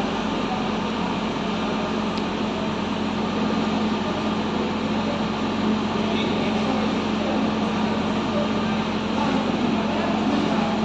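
Many people murmur and chatter in a large echoing hall.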